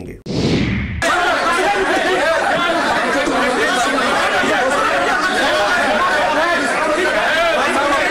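A crowd of men shout and argue in a noisy room.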